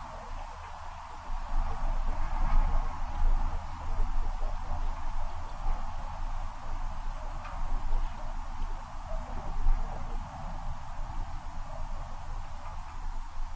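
A vehicle engine rumbles low and steadily.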